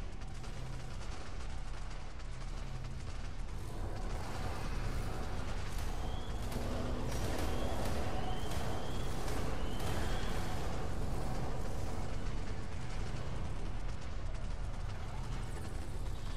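A large beast's feet thud steadily as it walks.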